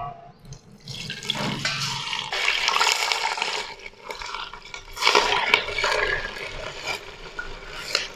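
Hot fat sizzles as it is poured into a pot.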